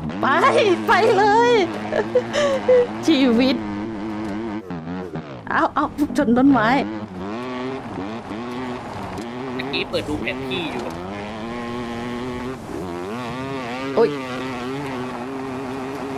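A dirt bike engine hums and revs up and down as the bike rides over rough ground.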